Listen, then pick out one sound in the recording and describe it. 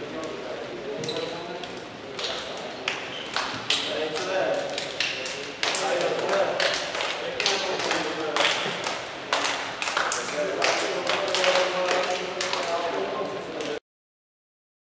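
Young men clap their hands.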